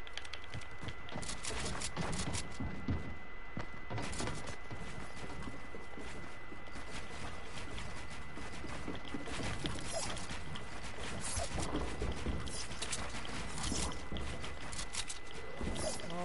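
Wooden building pieces clatter into place in quick bursts.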